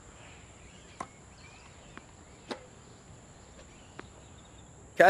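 A tennis ball is struck with a racket with sharp pops.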